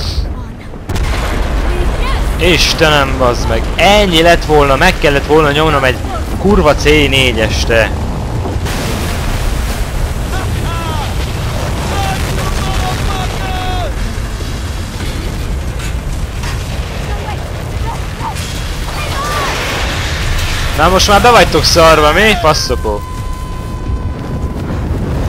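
A massive dam wall cracks and collapses with a deep, continuous rumble.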